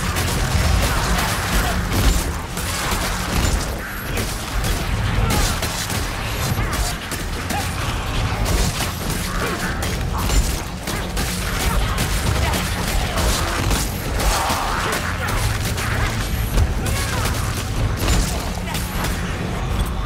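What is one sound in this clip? Blades hack and slash into flesh with wet, heavy impacts.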